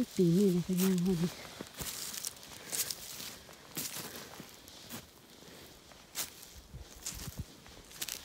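Footsteps crunch on dry twigs and leaves.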